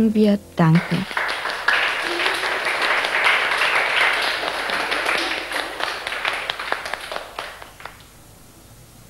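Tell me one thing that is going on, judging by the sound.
A group of people clap their hands in a lively rhythm.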